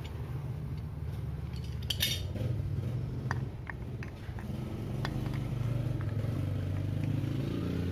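A metal wrench clanks against the fittings.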